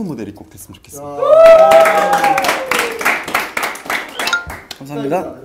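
A group of young men laugh and cheer loudly.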